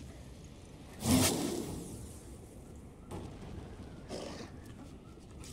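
Magic spells burst with a whooshing crackle during a fight.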